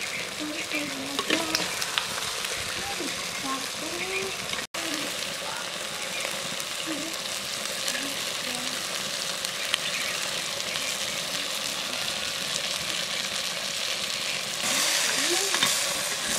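A metal spoon scrapes and stirs inside a clay pot.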